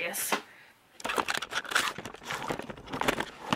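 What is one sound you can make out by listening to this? Handling noise rustles and thumps as the recording device is moved.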